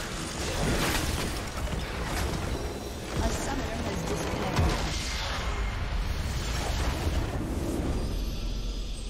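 Magic blasts crackle and whoosh in a game battle.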